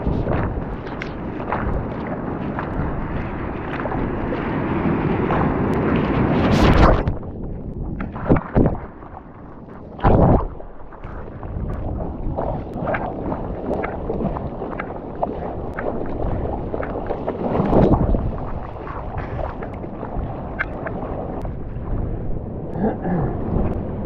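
Ocean water rushes and splashes close by.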